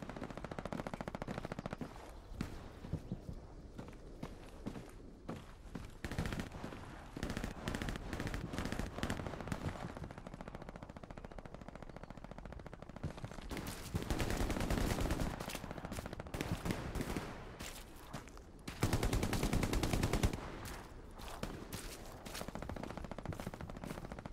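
Footsteps tread steadily on wooden floors and dirt paths.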